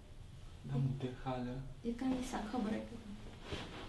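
A young man speaks quietly up close.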